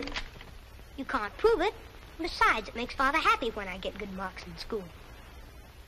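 A young boy talks softly and earnestly.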